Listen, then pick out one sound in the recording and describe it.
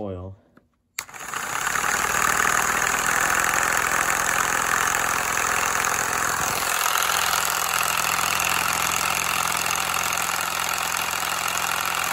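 A small electric motor whirs steadily, turning plastic gears.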